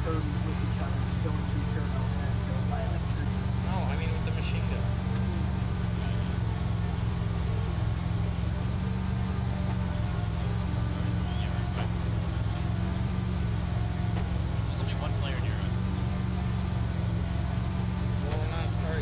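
Tyres roll on an asphalt road.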